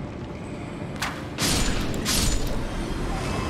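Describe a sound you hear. Armoured footsteps crunch on stony ground.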